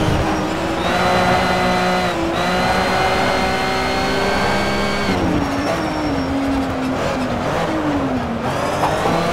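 A racing car engine roars at high revs, then drops sharply in pitch and revs unevenly as the car slows into a bend.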